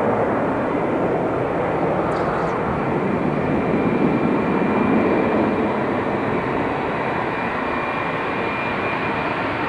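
A jet airliner's engines roar loudly as it speeds down the runway on takeoff.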